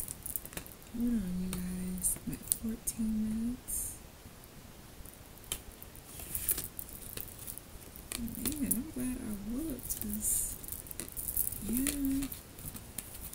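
A young woman talks calmly and softly, close by.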